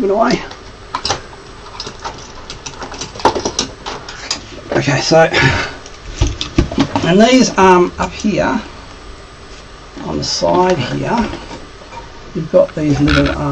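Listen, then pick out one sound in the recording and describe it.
Metal parts click and clack as a hand handles them.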